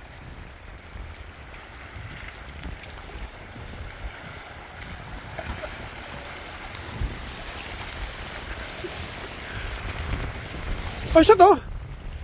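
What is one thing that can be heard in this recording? Small waves lap against rocks along the shore.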